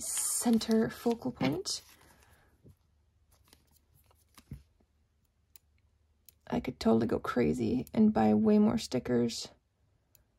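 Paper crinkles softly under fingers.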